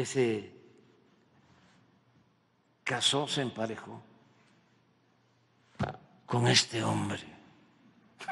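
An elderly man speaks into a microphone in short, calm phrases with pauses.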